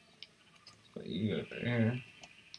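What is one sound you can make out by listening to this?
A flock of sheep bleats close by.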